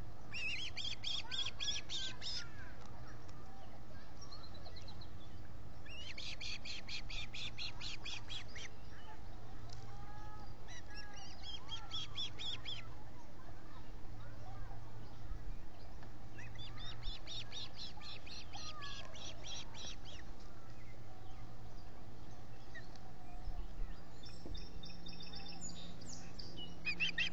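Young ospreys call in rapid, shrill chirping bursts close by.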